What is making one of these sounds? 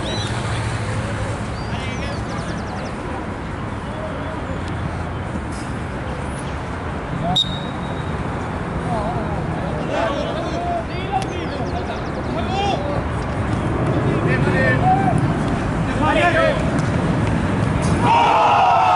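Young men shout and call out in the distance outdoors.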